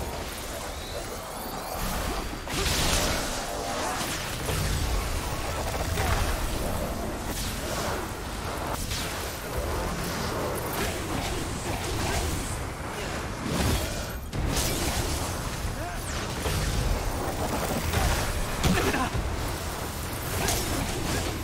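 Magic blasts and explosions crackle and boom in quick succession.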